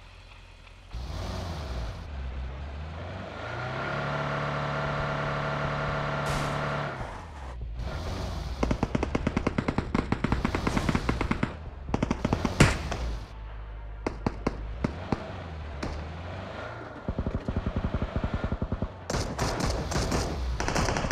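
A car engine revs and hums.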